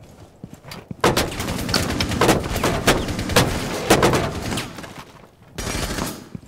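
Glass cracks as bullets strike it.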